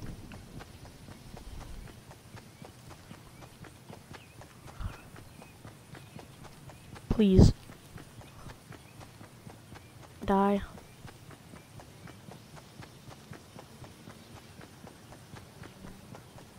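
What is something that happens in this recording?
Footsteps patter quickly on grass.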